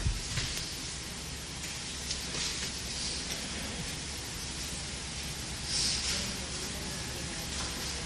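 Paper rustles as sheets are handled.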